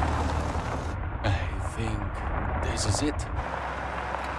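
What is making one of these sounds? A man speaks quietly inside a car.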